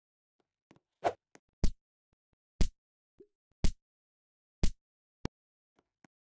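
Sharp punchy hits land in quick succession as a game creature is attacked.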